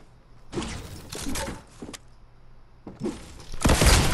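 A pickaxe strikes a wooden wall.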